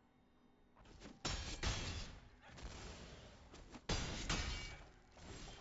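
Game sound effects thump and crash as cards clash in combat.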